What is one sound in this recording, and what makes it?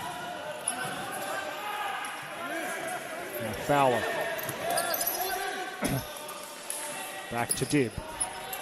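A ball thuds as players kick it on a hard floor.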